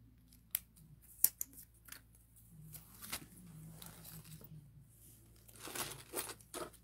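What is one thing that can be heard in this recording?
Bead necklaces clack and rattle.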